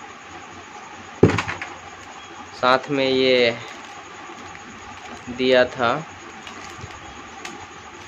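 Plastic packaging crinkles as it is handled.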